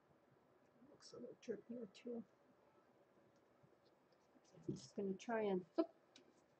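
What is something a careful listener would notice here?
An older woman talks calmly, close to a microphone.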